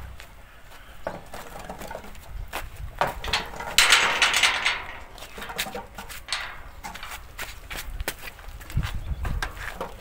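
Footsteps scuff on dirt.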